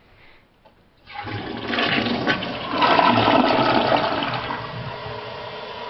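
A toilet flushes with a loud rushing gurgle.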